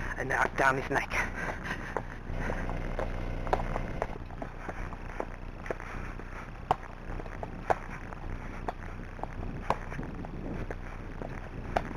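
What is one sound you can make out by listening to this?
A horse's hooves thud steadily on a grassy track.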